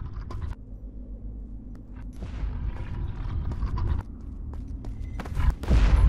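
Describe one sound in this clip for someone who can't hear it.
Footsteps patter quickly across a stone floor.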